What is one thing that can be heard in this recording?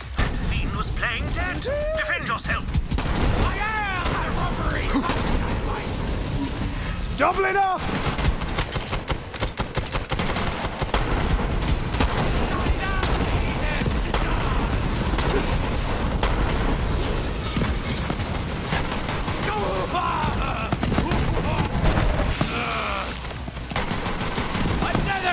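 Guns fire rapidly in bursts.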